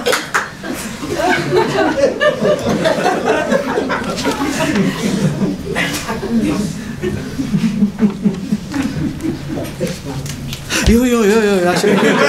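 An elderly man talks with animation into a microphone.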